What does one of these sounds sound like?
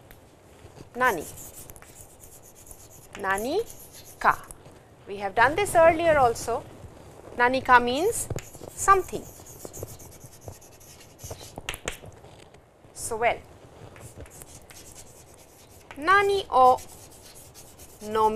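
A middle-aged woman speaks calmly, as if teaching.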